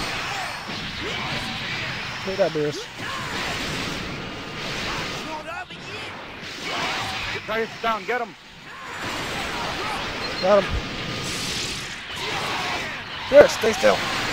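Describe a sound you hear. Energy blasts roar and crackle.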